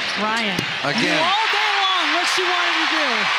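A crowd erupts in loud cheering.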